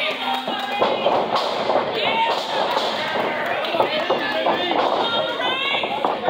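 A wrestler's feet thud on the ring canvas.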